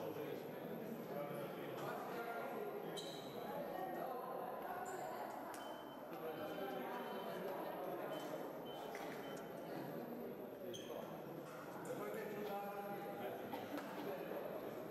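Many people chatter at once in a large echoing hall.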